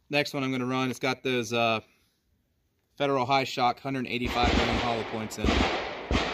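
Metal parts of a pistol click as a man handles it.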